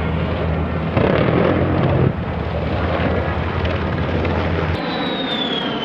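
A jet engine roars loudly overhead.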